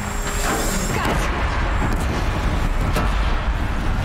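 Fire bursts with a loud whoosh.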